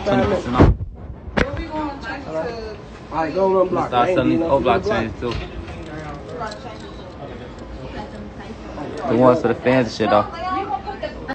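A young man talks casually and close up, heard through a phone's microphone.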